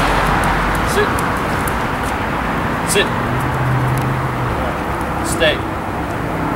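A man gives short, brisk commands to a dog outdoors.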